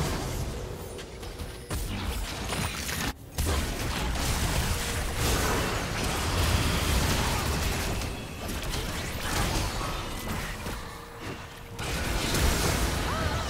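Magic spells whoosh, crackle and burst in a fast battle.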